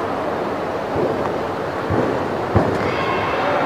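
Feet thump on a springy floor as a gymnast tumbles and lands.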